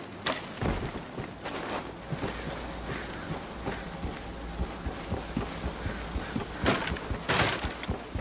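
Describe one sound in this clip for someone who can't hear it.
Footsteps thump across wooden planks.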